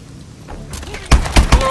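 A rifle fires a quick burst of loud shots.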